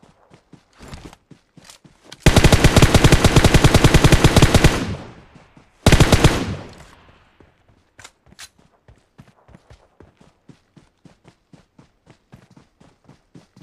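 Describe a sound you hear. Footsteps patter steadily over grass.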